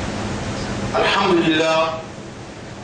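A man speaks briefly in a low voice, close by.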